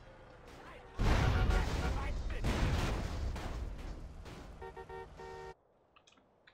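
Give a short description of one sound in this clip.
A loud crash booms and slowly fades.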